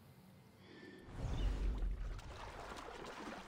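Water splashes heavily as a body plunges in.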